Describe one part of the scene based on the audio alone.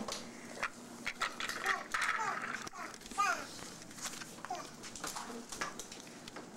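A young child babbles and squeals close by.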